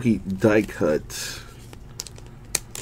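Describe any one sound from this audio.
A plastic card sleeve crinkles as a card slides out.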